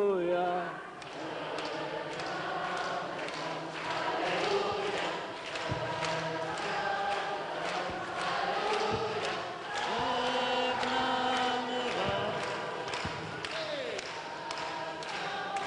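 A large crowd sings together in an echoing hall.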